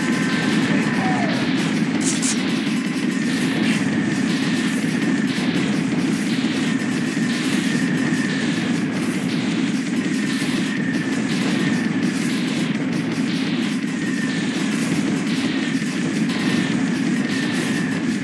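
Cannon fire from a game rattles rapidly without pause.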